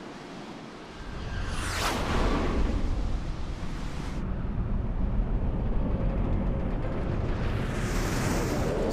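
A huge burning airship rumbles low overhead.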